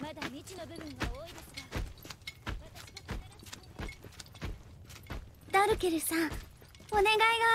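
Heavy footsteps march in a slow, even rhythm.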